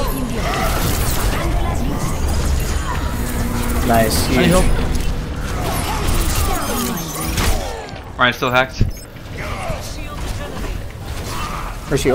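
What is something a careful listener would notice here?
Energy beams hum and crackle from a weapon.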